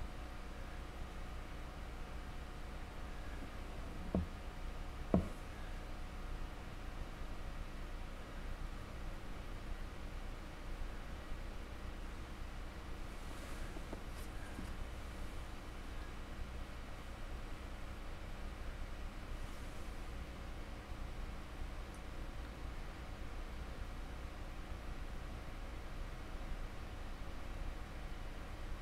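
A paintbrush dabs and brushes softly against a hard surface.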